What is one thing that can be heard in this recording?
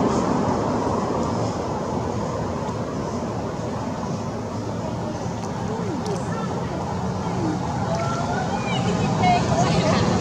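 A dry leaf crinkles as a baby monkey handles it.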